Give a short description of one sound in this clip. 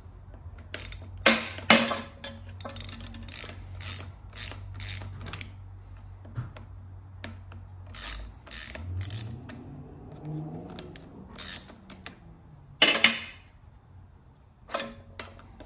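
Metal tools clink and clatter on a metal bench.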